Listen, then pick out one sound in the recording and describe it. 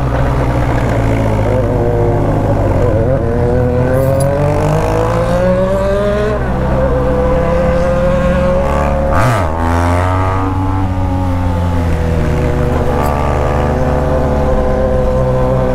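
A motorcycle engine hums and revs up and down as the bike rides along.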